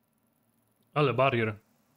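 A young man speaks briefly and loudly, close to a microphone.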